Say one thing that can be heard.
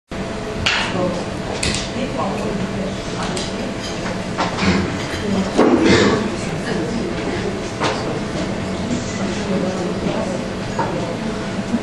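An electric guitar plays live through loudspeakers.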